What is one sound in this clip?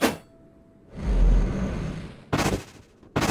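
A heavy gate rumbles open with a low roar.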